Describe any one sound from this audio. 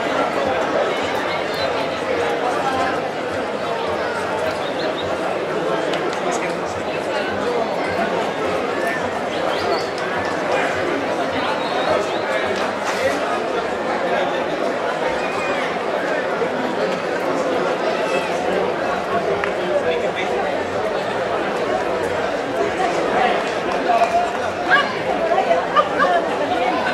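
A large outdoor crowd chatters and calls out.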